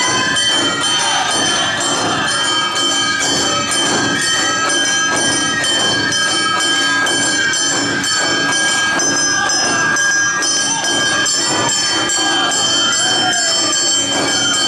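Flutes play a lively, high melody.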